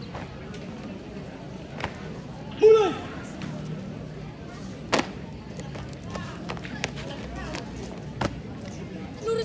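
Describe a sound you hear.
Boots stamp on hard ground outdoors.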